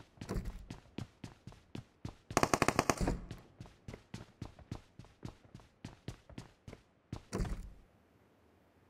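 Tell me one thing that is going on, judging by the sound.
Footsteps thud quickly up hard stairs.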